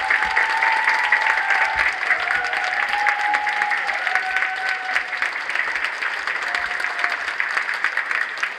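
A children's choir sings together in a large echoing hall.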